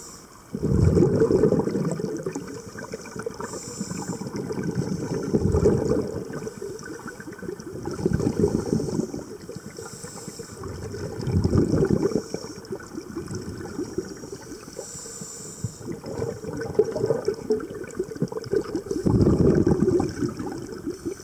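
A diver breathes out through a regulator underwater, with bubbles rushing out in loud bursts every few seconds.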